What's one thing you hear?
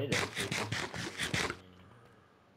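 A monster groans in a low voice.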